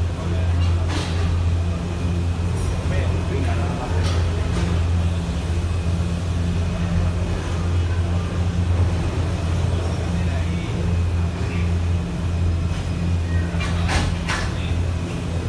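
A cable car cabin clunks and rattles over guide wheels.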